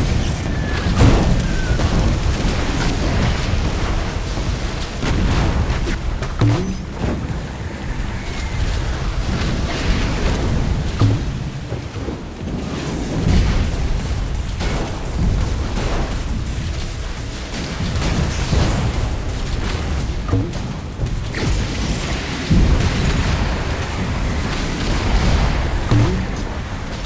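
Cannon shots and explosions boom.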